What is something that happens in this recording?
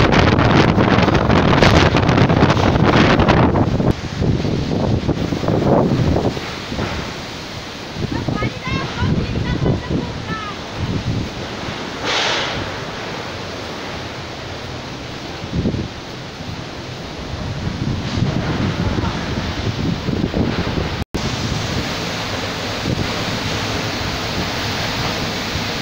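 Storm winds roar and gust loudly outdoors.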